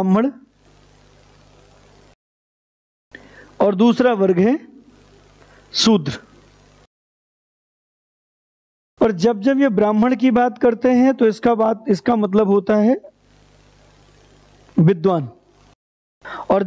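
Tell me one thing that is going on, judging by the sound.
A man speaks with animation into a close microphone, pausing often.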